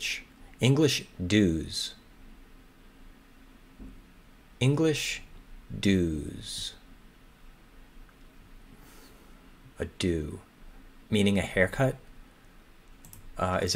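A man speaks calmly and thoughtfully into a close microphone, with pauses.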